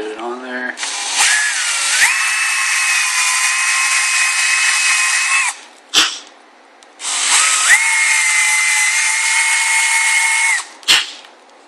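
A cordless drill whirs loudly as it bores through plastic, in two bursts.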